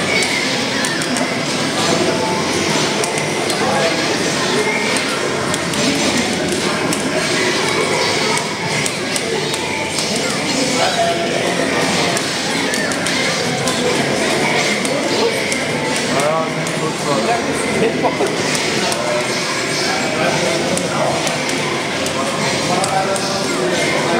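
Video game music plays steadily through a loudspeaker.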